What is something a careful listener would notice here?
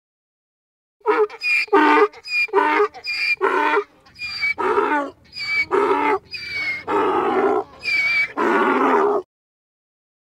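A donkey brays.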